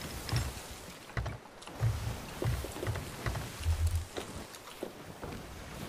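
Waves slosh and crash against a wooden ship.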